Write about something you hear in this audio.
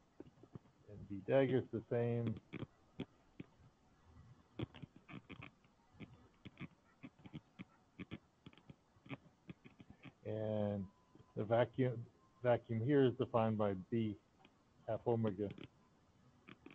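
A man speaks calmly through an online call, in short bursts.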